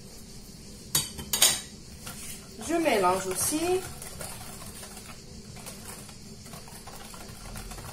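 A whisk stirs a thick batter, tapping and scraping against a bowl.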